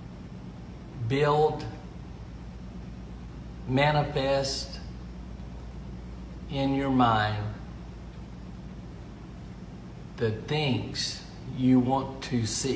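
A middle-aged man speaks calmly into a nearby microphone, with pauses between phrases.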